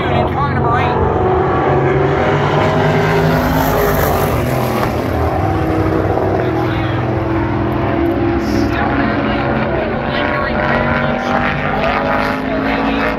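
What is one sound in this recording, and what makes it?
Race car engines roar loudly around a track.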